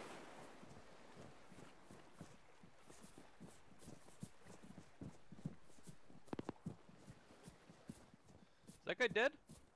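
Footsteps tread steadily through grass.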